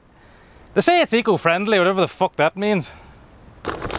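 A man speaks up close, with animation.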